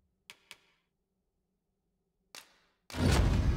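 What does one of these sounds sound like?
Soft interface clicks sound.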